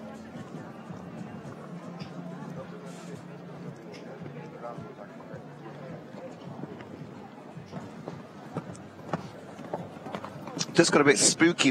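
A horse's hooves thud on soft sand as it canters.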